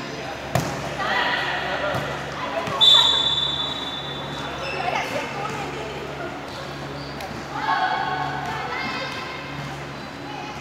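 Young women call out and shout in a large echoing hall.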